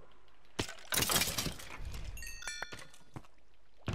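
A pickaxe chips at stone blocks.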